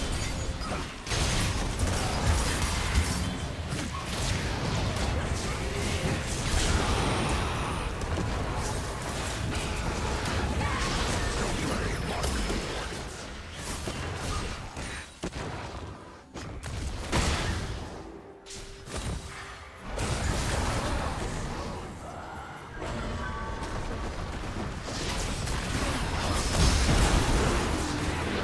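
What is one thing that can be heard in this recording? Game spells whoosh, crackle and burst in a fast fight.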